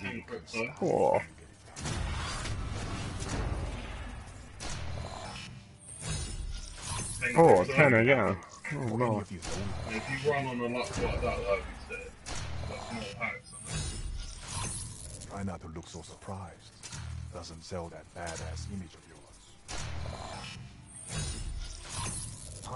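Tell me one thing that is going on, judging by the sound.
Digital whooshes and chimes sound as cards are revealed one after another.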